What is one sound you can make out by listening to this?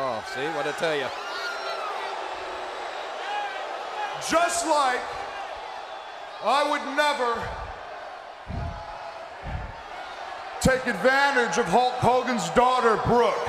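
A man speaks into a microphone over loudspeakers in a large echoing arena.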